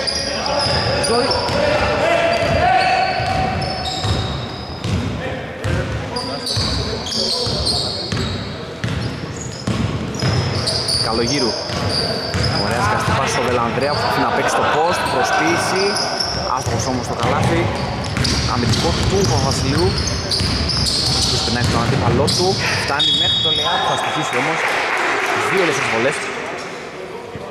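A basketball bounces with hollow thuds on the floor.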